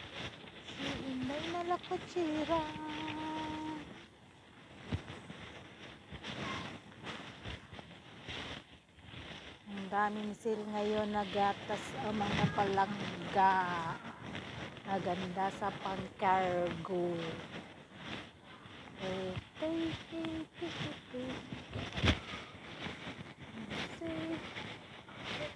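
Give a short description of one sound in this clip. A middle-aged woman talks close to a microphone, with animation.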